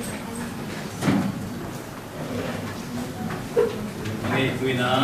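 A middle-aged man reads out calmly, heard through a microphone in a room with some echo.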